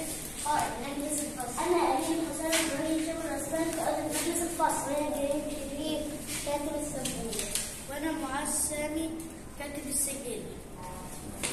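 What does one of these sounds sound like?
A young boy speaks clearly nearby.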